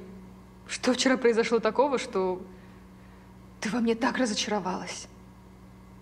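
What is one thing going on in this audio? A young woman speaks calmly and with expressive emphasis close by.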